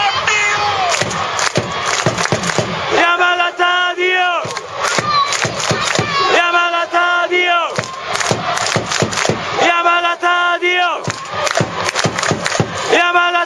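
Nearby fans chant loudly in unison.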